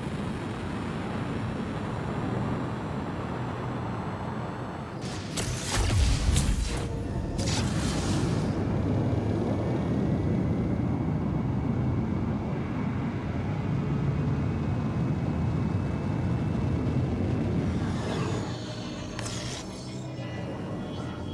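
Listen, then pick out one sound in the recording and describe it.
A spacecraft engine roars steadily.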